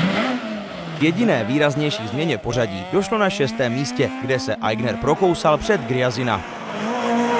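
Popping and crackling bangs burst from a rally car's exhaust.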